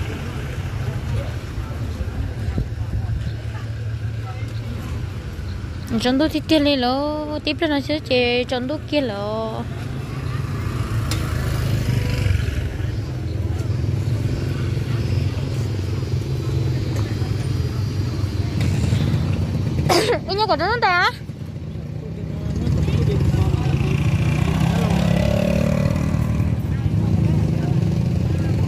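Motorbike engines rumble nearby.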